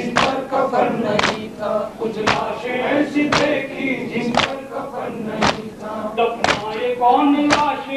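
A group of young men chant loudly together in rhythm.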